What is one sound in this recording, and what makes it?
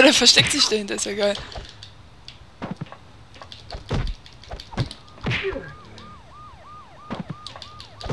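Blows and weapon clashes ring out in a fight.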